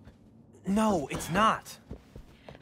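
A young man speaks briefly and hesitantly.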